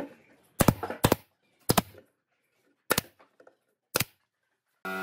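A cordless drill drives screws into wood in short bursts.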